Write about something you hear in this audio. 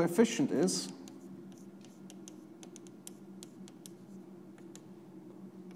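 Chalk taps and scratches on a blackboard.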